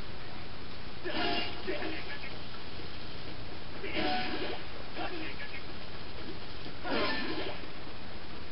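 Sword swipes whoosh in sharp bursts from a video game through a television speaker.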